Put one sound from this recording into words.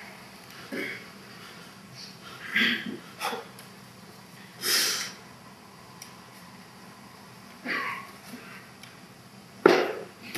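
A man calls out in short, loud bursts.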